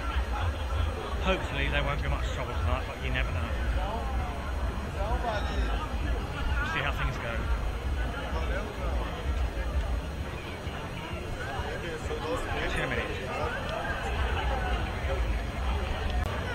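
A crowd of young men and women chatters and calls out outdoors.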